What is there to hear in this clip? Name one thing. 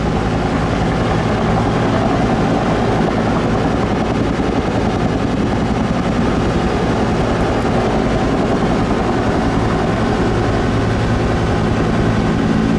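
A helicopter's turbine engine whines.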